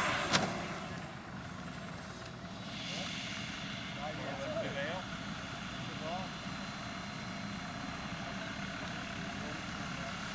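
A model jet engine hisses steadily in the distance.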